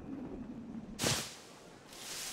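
A body lands with a soft thump in dry straw.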